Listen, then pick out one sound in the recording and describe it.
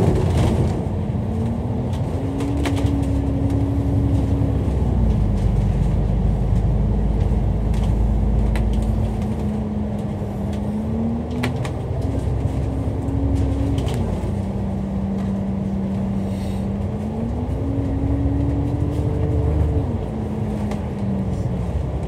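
A bus engine rumbles and whines as the bus drives along, the whine rising and falling with the gears.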